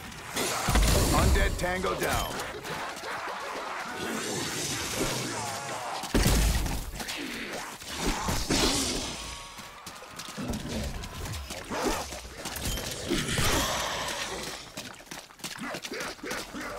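Zombies growl and snarl nearby.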